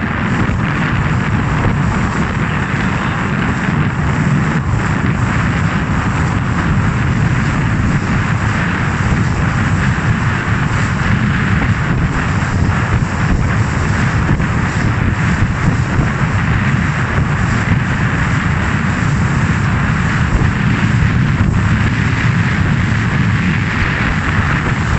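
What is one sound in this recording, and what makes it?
Strong wind buffets outdoors.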